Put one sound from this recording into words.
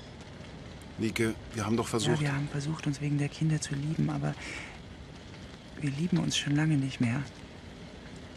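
A man speaks quietly and calmly nearby.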